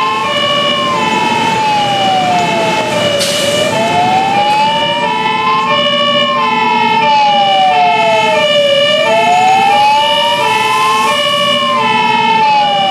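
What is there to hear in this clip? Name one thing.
A second fire engine siren sounds in an alternating two-tone pattern.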